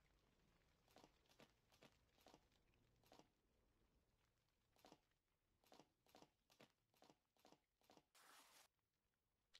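Footsteps tap lightly on a stone floor.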